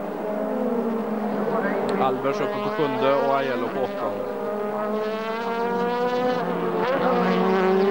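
Racing car engines roar loudly at high speed, rising and falling in pitch.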